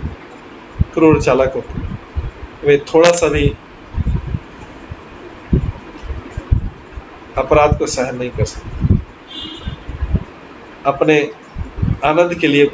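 A middle-aged man speaks calmly through a microphone, as on an online call, with pauses.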